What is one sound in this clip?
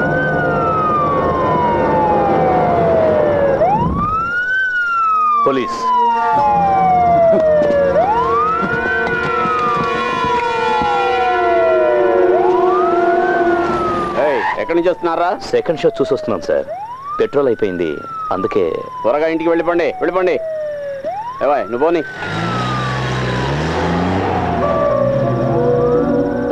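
A police siren wails, rising and falling over and over.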